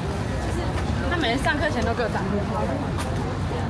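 Young women talk as they walk past close by.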